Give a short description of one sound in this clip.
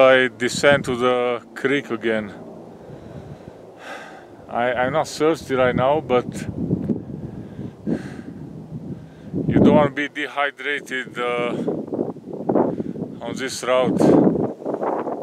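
A man talks calmly and close up.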